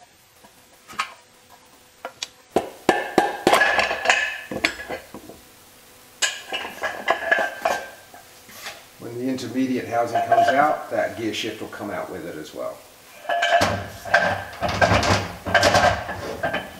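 Metal parts clink and clank as a gearbox is taken apart.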